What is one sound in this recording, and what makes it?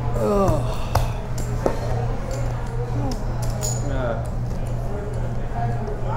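Poker chips click together on a table.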